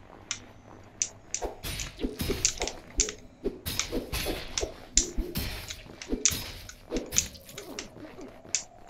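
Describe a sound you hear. Sword slashes and hits ring out in quick bursts.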